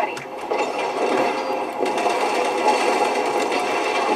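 Explosions boom from a game.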